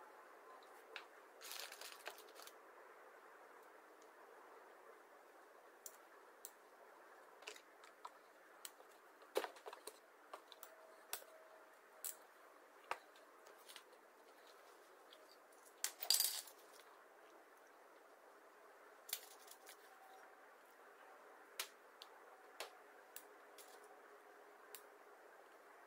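Metal parts click and clack as a revolver is handled.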